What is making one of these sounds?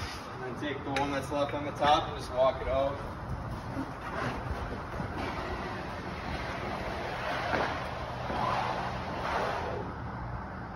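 A flat fire hose slaps and slides across a concrete floor as it unrolls.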